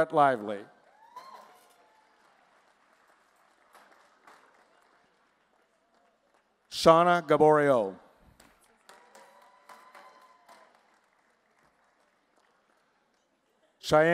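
A small audience claps politely.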